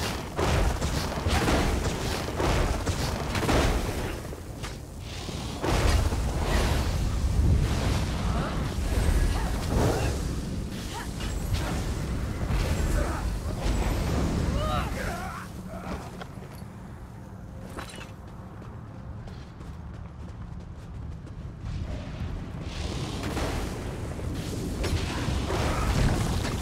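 Fire roars and whooshes.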